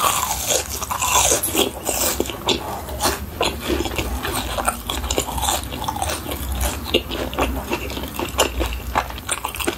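A young woman chews crunchy food close to a microphone.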